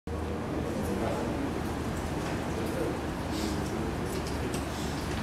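A man speaks calmly to an audience in a room with a slight echo.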